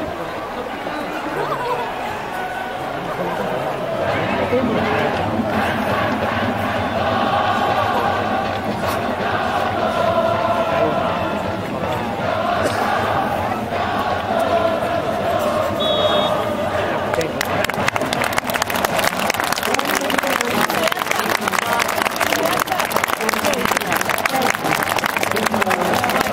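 A large stadium crowd chants and sings together, echoing in the open air.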